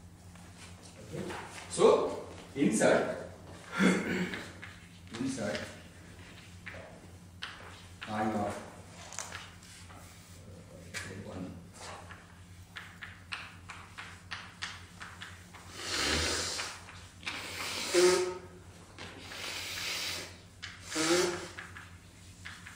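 A man lectures in an echoing hall, heard through a microphone.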